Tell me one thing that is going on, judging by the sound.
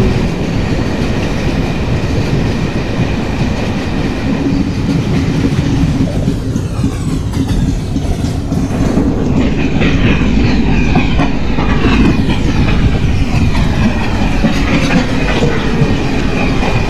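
A train rumbles along the tracks, its wheels clattering as it passes.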